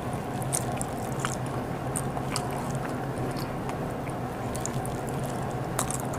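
Fingers squish and tap against a plate of food.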